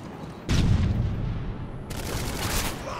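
A rifle fires with loud booming shots.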